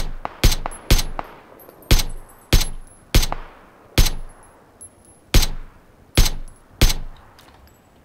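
A rifle fires loud, sharp shots one after another, each ringing out briefly.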